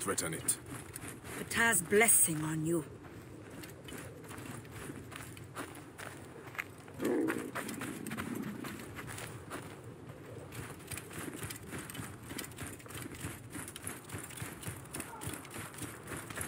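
Footsteps run and scuff through loose sand.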